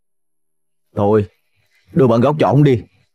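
A young man speaks with emotion close by.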